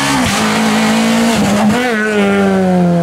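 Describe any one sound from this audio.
A rally car engine roars loudly as the car passes close by.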